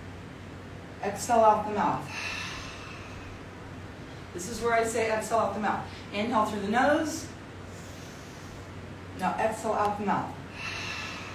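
A woman speaks with energy close by, in bursts.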